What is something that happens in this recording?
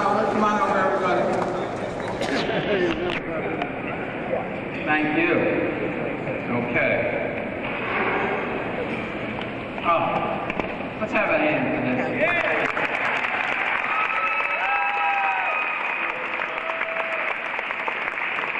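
An elderly man speaks through a loudspeaker in a large echoing hall, announcing.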